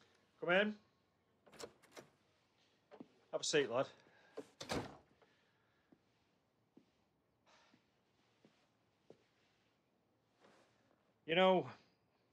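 A middle-aged man speaks briefly and calmly.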